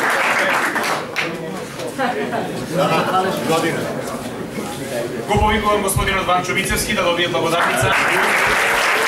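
A man speaks clearly into a microphone to a room.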